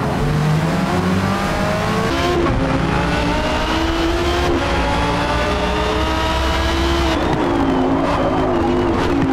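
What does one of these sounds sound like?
A racing car engine roars and rises in pitch as it accelerates.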